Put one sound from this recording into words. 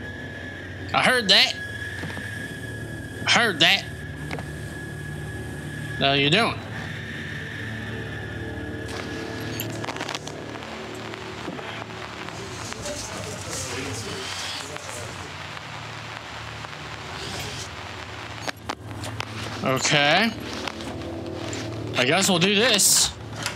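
A young man talks and exclaims loudly, close to a microphone.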